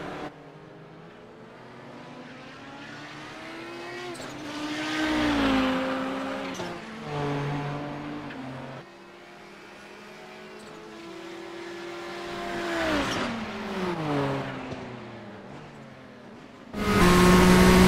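Racing car engines whine as the cars approach and roar past, their pitch dropping.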